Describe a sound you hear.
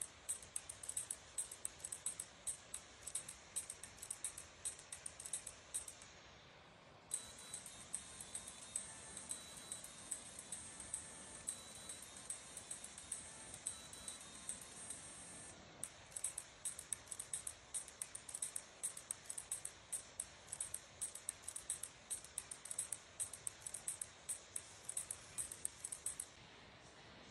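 A timer ticks quickly and steadily.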